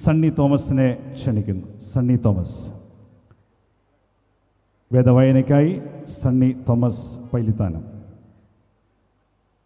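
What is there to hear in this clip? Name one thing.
A man speaks loudly through a loudspeaker in a large echoing hall.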